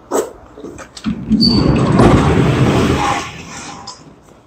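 A heavy metal door rattles and scrapes as it slides open.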